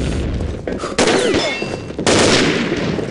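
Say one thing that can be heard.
A scoped rifle fires in a video game.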